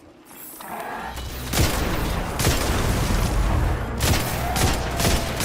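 Gunshots fire in rapid bursts, with loud booming blasts.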